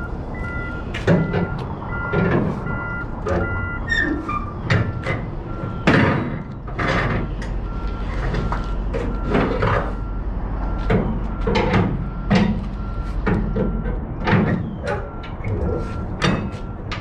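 Straps rattle and clack against a trailer.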